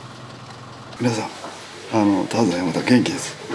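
A young man speaks cheerfully and close up.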